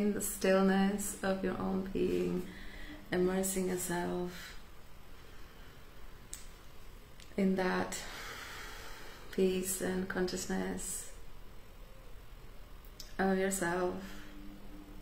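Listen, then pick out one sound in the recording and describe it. A young woman speaks calmly and warmly, close to a microphone, with pauses.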